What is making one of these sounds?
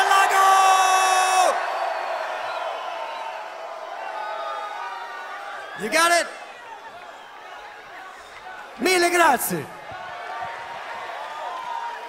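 A large crowd cheers and shouts loudly in an open-air space.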